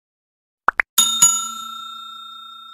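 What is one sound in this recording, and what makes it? A bell chime rings.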